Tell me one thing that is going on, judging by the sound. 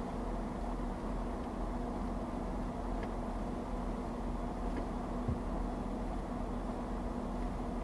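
An idling engine rumbles low and steady from inside a car.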